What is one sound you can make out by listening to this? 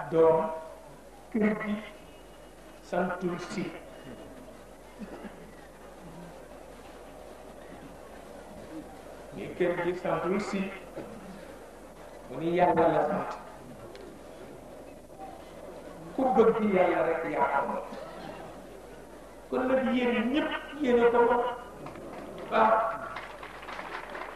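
A man speaks into a microphone in bursts, with pauses between phrases.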